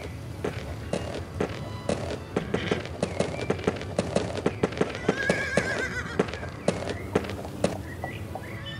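A horse's hooves clop steadily on grass.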